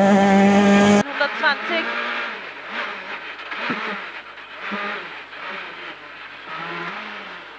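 A rally car engine revs and whines from inside the cabin.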